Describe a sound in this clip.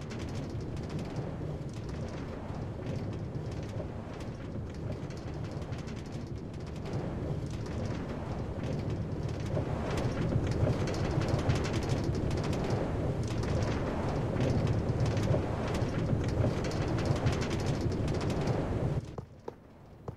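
A mine cart rumbles along rails.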